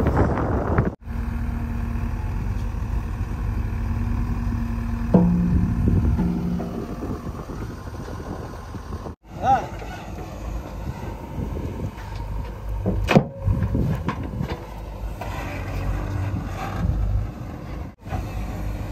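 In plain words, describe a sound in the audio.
A digger's diesel engine rumbles steadily nearby.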